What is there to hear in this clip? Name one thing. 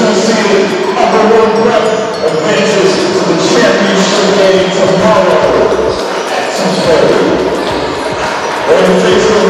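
Many young men chatter and call out in a large echoing hall.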